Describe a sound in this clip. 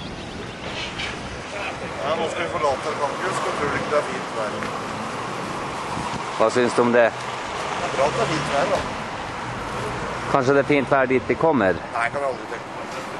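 A young man talks outdoors.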